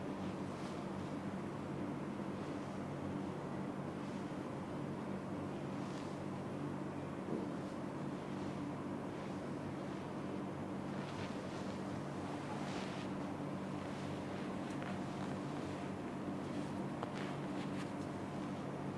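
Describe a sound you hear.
Hands press and rub softly against fabric and skin.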